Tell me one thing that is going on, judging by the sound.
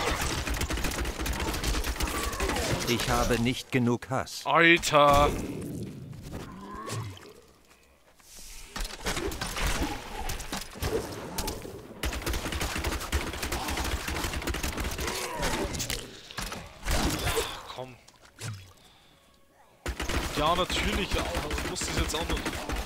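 Magic blasts crackle and boom during a fight.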